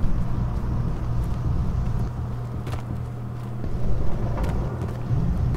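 Footsteps crunch softly over forest ground.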